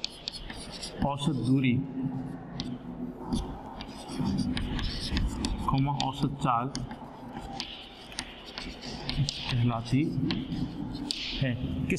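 A man speaks calmly, as if teaching, close by.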